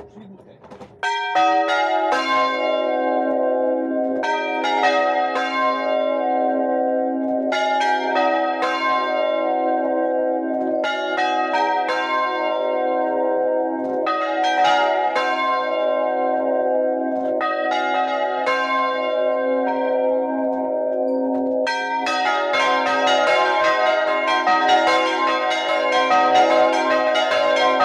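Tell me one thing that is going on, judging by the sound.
Large bells ring loudly and close by, striking one after another in a steady, overlapping peal.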